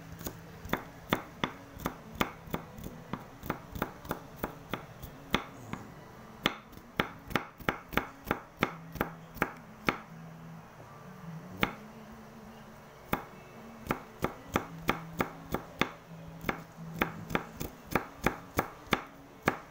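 A knife chops rapidly on a wooden board.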